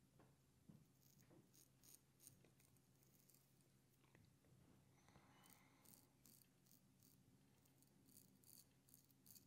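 A razor scrapes softly across stubble.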